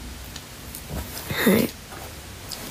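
A young woman lets out a short, high vocal sound close by.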